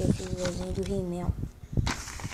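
A young child speaks close to the microphone.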